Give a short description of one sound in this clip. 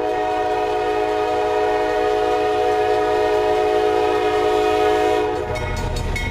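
A train horn blares loudly and steadily.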